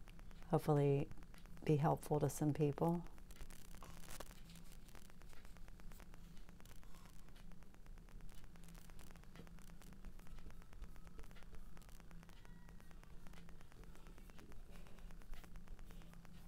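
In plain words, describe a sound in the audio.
A paintbrush brushes and dabs softly on canvas.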